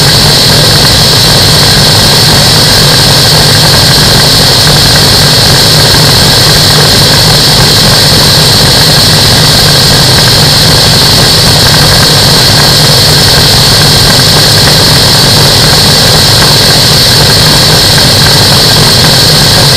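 A light aircraft engine drones loudly and steadily.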